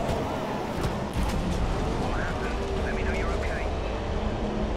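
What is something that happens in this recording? A racing car crashes with a heavy thud.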